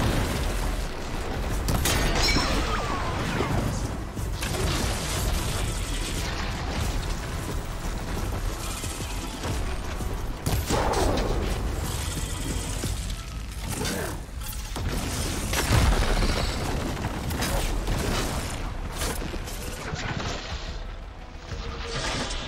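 A bowstring twangs as arrows fly.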